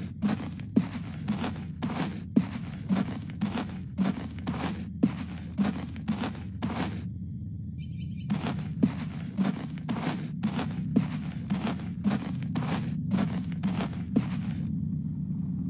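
Footsteps thud steadily on pavement.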